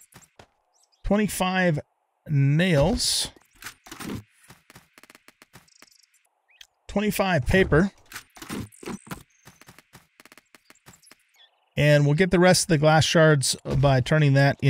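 A middle-aged man talks casually into a close microphone, in bursts with pauses.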